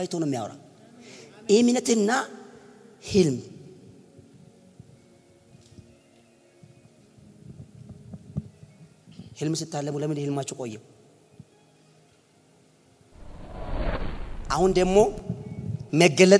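A man preaches with animation through a microphone, in bursts with pauses.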